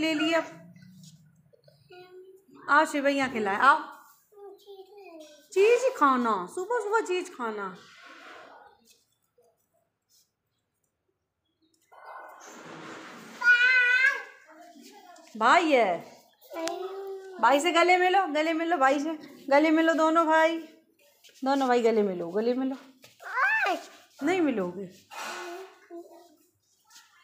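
A young child talks and babbles close by, in a high voice.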